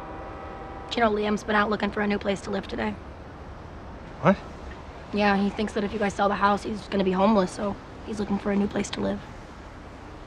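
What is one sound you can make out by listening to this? A young woman speaks in reply, close by.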